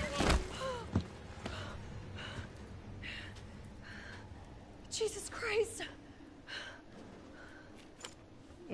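A young woman speaks close to a microphone.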